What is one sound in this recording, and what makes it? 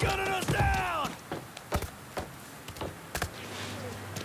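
Hands and boots clank on a metal ladder during the climb.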